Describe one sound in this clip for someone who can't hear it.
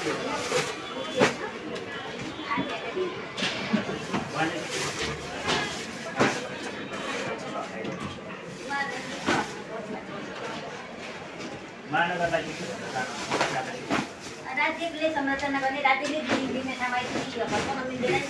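Books thud as they are pulled from shelves.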